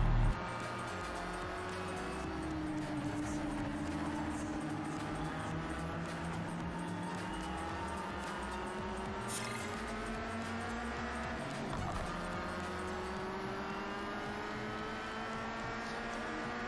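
A car engine drones steadily, dropping in pitch as it slows and then revving higher as it speeds up.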